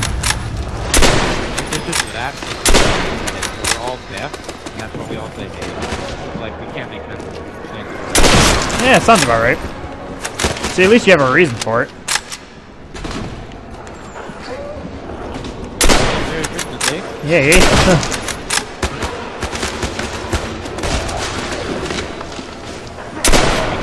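Rifle shots ring out sharply, one at a time.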